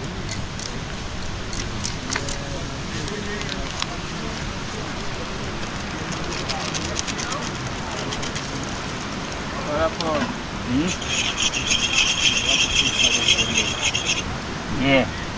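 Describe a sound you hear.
Hot oil sizzles in a pan.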